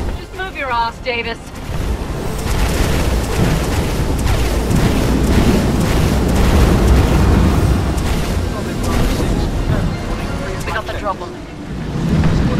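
A dropship engine roars loudly nearby.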